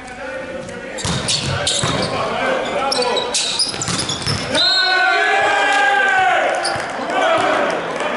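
A volleyball is struck hard with sharp smacks.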